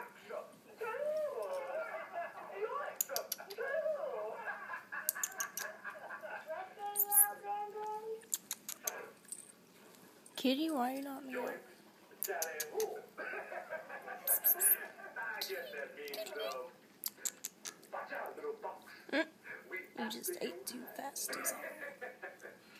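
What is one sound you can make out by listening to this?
A small kitten mews loudly and repeatedly, close by.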